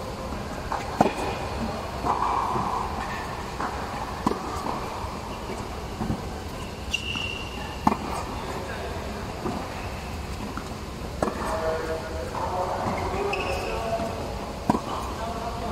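Tennis balls are struck with rackets in a large echoing hall.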